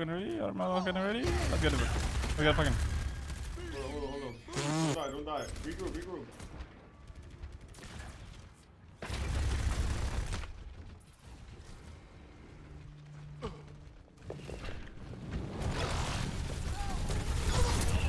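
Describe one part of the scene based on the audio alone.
Gunfire and game effects sound from a video game.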